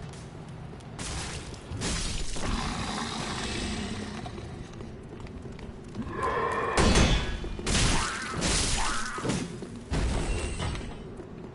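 Metal weapons clash and strike heavily.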